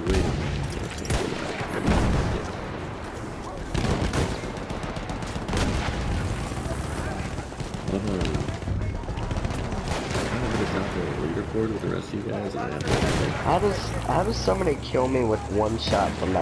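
Gunfire cracks and booms in sharp bursts.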